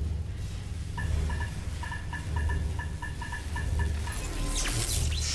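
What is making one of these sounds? A control panel beeps in a quick, even series.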